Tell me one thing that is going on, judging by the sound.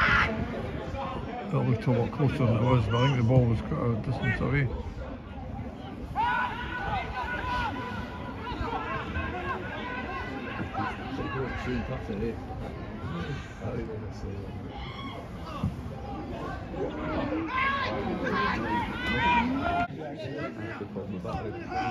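Men shout and call to each other across an open outdoor field.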